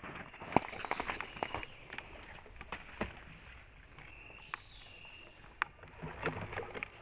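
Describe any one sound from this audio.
Leaves rustle and twigs snap as a man pushes through dense undergrowth close by.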